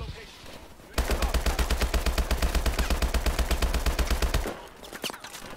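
An automatic gun fires a rapid, steady burst at close range.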